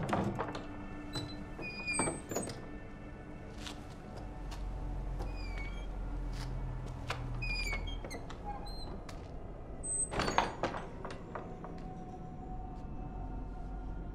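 Footsteps scuff on a gritty floor.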